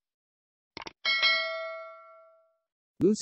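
A small bell chimes and slowly fades.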